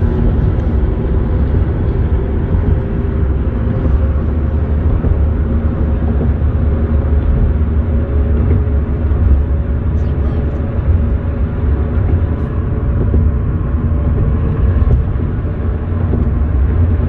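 A car's engine and tyres rumble steadily from inside the moving car.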